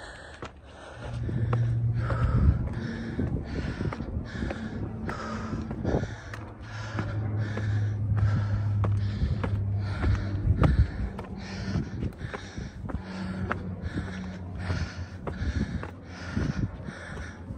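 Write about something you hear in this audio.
Footsteps crunch on gravel and stone steps.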